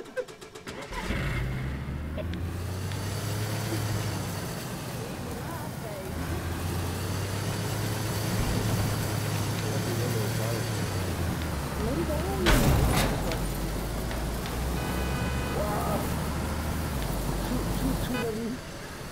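A car engine drones steadily.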